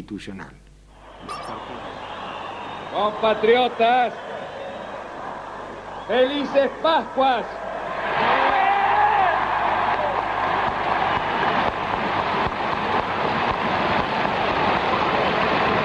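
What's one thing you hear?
A huge outdoor crowd cheers and roars.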